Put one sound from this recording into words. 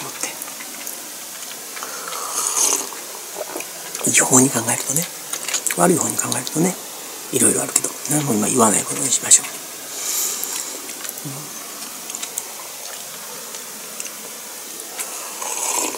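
A man sips loudly from a mug.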